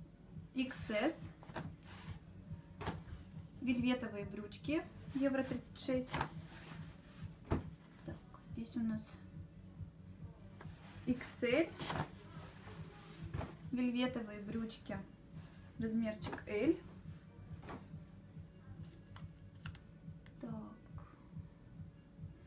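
Fabric rustles and swishes as trousers are lifted and laid down.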